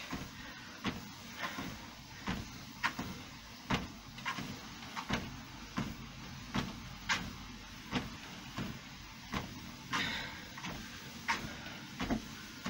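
Footsteps thud steadily on a running treadmill.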